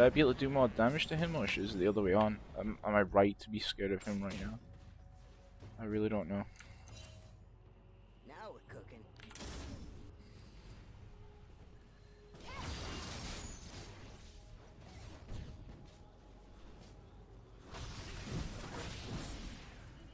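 Magic spells whoosh and crackle in a fantasy battle game.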